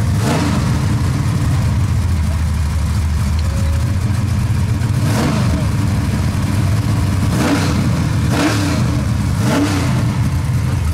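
A race car engine revs sharply in short bursts.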